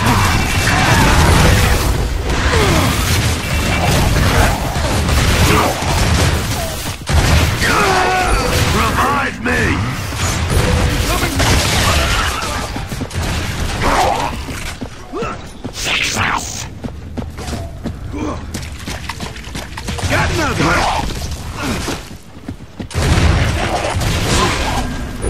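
Shotgun blasts boom again and again.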